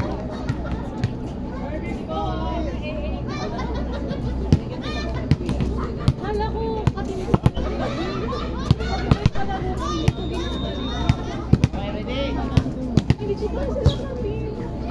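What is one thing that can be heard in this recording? Several young men and women chatter and call out nearby, outdoors.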